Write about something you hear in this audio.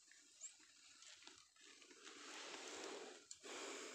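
A plastic rope tensioner rattles as a hand lets go of it.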